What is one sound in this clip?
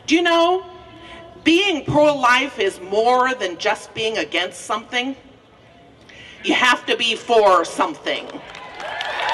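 An older woman speaks steadily into a microphone, heard through a loudspeaker outdoors.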